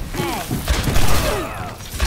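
A blast bursts loudly close by.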